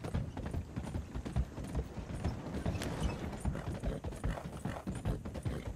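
Hooves thud on wooden planks of a bridge.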